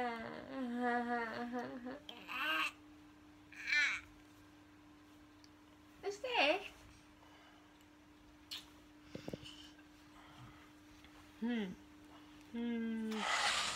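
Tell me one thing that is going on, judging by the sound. A small child laughs.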